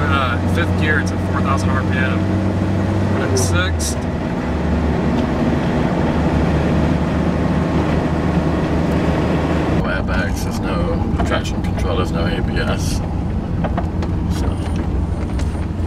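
A car engine roars loudly inside the car, its pitch rising and falling as it speeds up and shifts gears.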